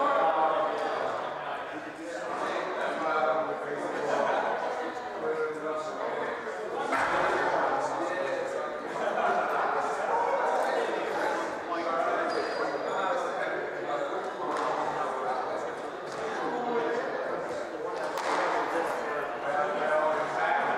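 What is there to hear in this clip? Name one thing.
Rackets strike a squash ball with sharp cracks.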